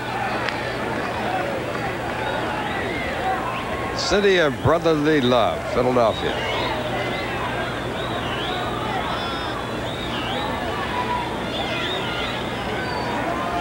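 A crowd murmurs steadily in a large open stadium.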